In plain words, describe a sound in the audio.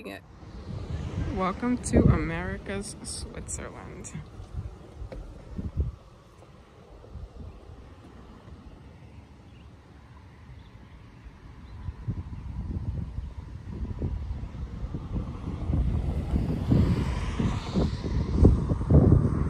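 Wind blows and buffets the microphone outdoors.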